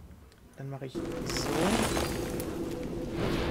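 Magical game sound effects chime and whoosh.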